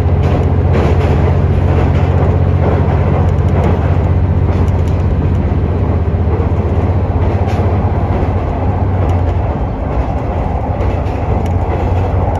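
Train wheels click and rattle over the rail joints.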